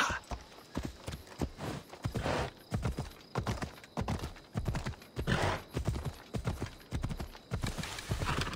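Horse hooves pound the ground at a steady gallop.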